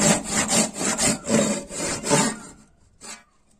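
A hand saw cuts through wood in quick, rhythmic strokes.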